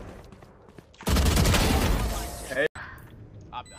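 A rapid burst of gunfire rattles.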